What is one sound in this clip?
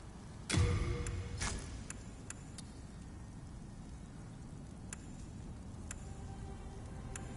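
Short, soft menu clicks tick now and then.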